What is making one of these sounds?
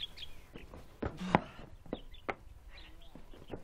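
A metal pot clanks as it is set down on a wooden stool.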